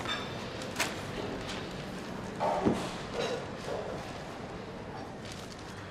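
Newspaper pages rustle.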